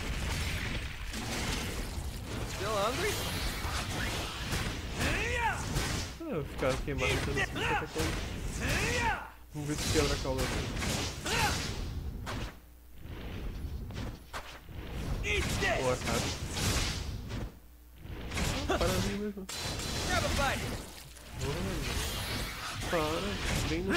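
A huge monster growls and roars.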